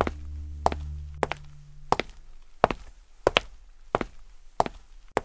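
Footsteps thud at a steady, even pace on a hard floor.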